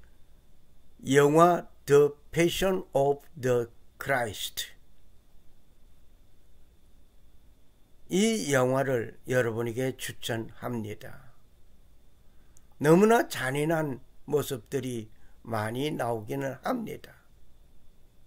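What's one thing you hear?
An elderly man speaks calmly and slowly into a microphone, in three short bursts with pauses.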